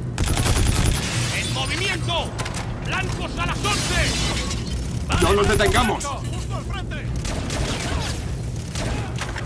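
Automatic gunfire rattles in bursts.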